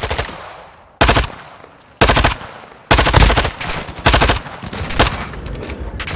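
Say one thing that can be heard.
A gun fires in loud, sharp bursts.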